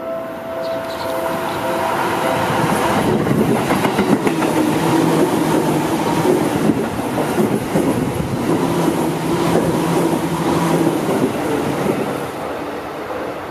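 A train rushes past close by with loud rumbling and clattering wheels.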